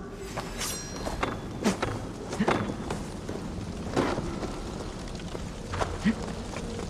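Footsteps thud on the ground in quick bursts.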